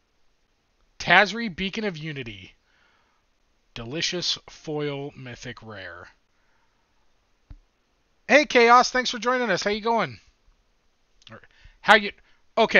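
A man talks with animation, close to a microphone, in short bursts.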